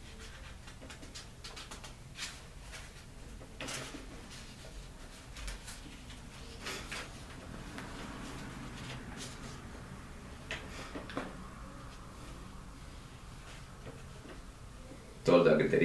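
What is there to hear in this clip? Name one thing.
Small clicks and rustles come from something handled close by.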